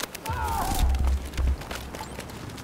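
Gunfire rattles close by.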